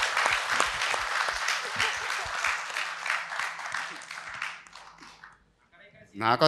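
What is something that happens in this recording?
An audience claps and cheers loudly in a large room.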